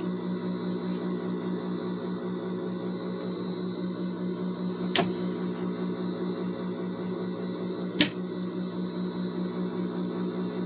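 A sewing machine hums and stitches steadily with a fast rhythmic whir.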